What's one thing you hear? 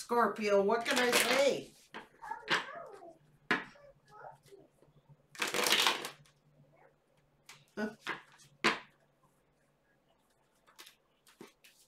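Playing cards shuffle and riffle.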